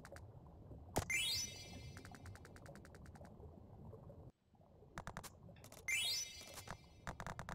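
A bright rising chime sounds.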